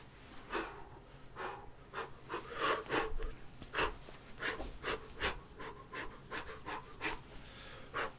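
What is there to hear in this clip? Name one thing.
A young man speaks quickly and with animation, close to the microphone.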